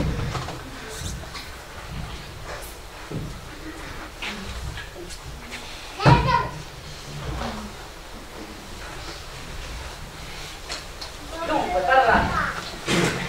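Men and women speak, heard from a distance.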